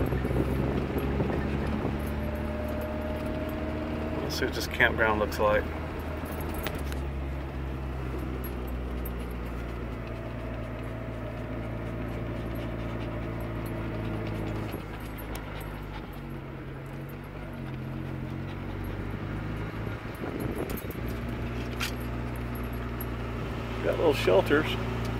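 A car engine hums steadily while driving, slowing down near the end.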